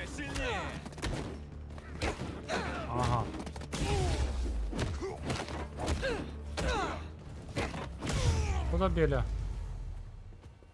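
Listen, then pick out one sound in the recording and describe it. Punches land with heavy thuds.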